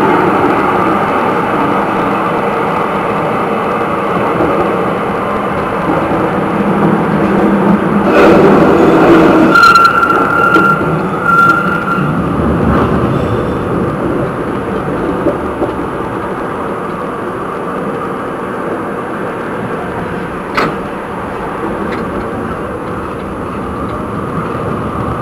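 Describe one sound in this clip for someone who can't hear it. A tram rumbles steadily along its rails.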